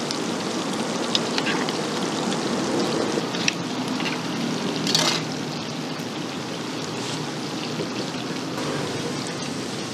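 Oil sizzles and bubbles steadily around frying eggs.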